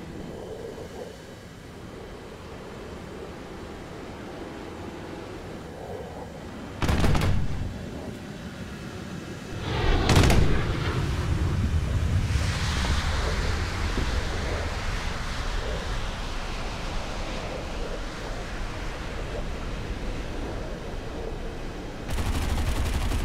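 A jet engine roars steadily and rises and falls in pitch.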